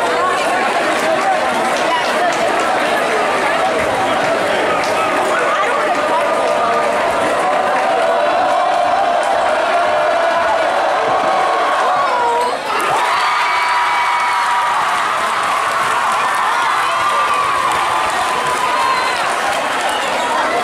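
A large crowd cheers and chatters loudly in an echoing gym.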